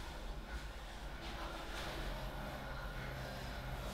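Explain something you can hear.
Clothing rustles softly as a person lies down on the floor.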